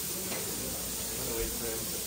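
Food sizzles in hot pans.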